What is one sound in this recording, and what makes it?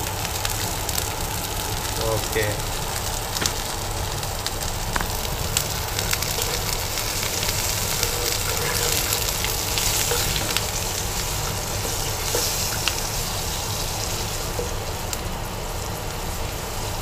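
Oil sizzles and bubbles in a hot pan.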